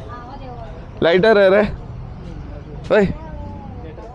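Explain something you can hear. A man close by speaks loudly and with animation.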